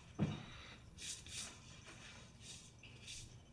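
Clothing rustles softly in short bursts.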